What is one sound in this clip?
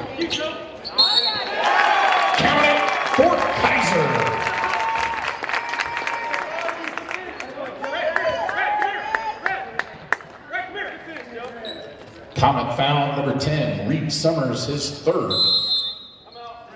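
A referee blows a short, shrill whistle.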